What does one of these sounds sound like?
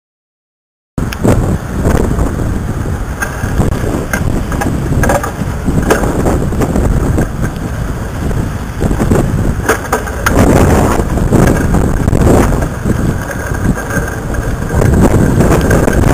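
Strong wind buffets the microphone in gusts outdoors.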